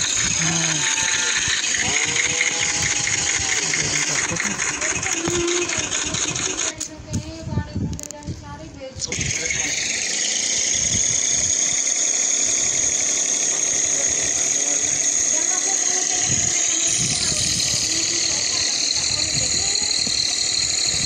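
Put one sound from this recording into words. A tractor engine chugs steadily.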